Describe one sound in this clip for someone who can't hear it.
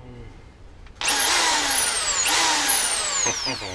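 A power drill whirs loudly in bursts, rising and falling in pitch.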